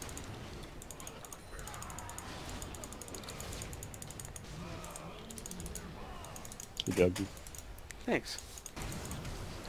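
Magic spells whoosh and crackle during a video game battle.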